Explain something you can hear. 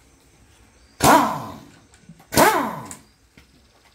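A motorbike engine briefly sputters into life twice and dies away.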